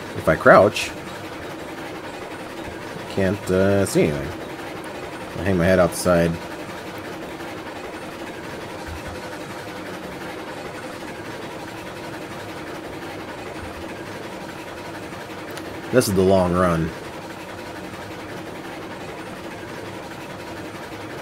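A steam train rolls steadily along the rails with a low rumble.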